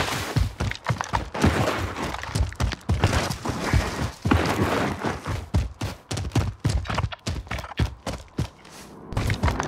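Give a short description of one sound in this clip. Footsteps run quickly over grass and dirt.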